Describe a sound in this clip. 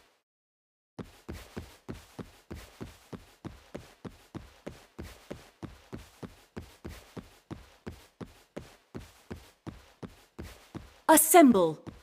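Footsteps patter quickly and evenly as a game character runs.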